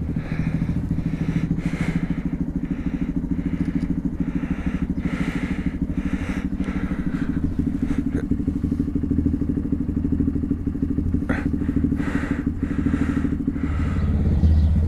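A motorcycle engine idles with a steady rumble.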